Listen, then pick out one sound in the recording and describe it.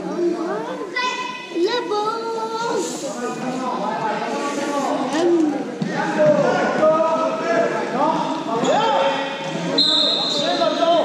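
Sneakers squeak on a sports court.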